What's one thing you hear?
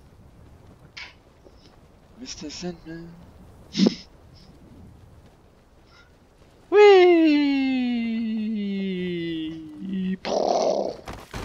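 Wind rushes steadily past a parachute.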